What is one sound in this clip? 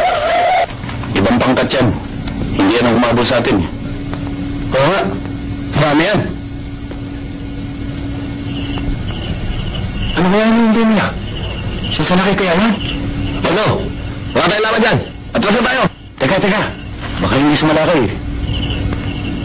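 A man speaks in a tense, raised voice.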